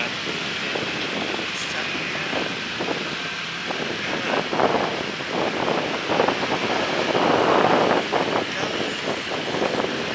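A man speaks close to a phone microphone.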